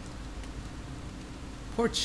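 A fire crackles and burns.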